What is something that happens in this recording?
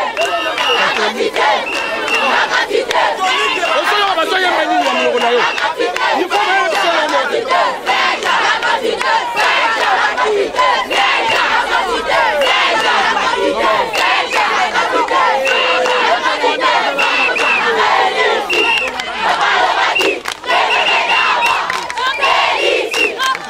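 A large crowd of children and young people chants and shouts loudly, close by, outdoors.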